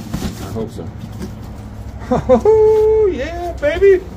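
Cardboard box flaps are pulled open with a scrape.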